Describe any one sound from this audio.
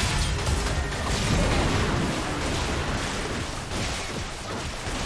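Game spell effects burst and crackle as fighters clash.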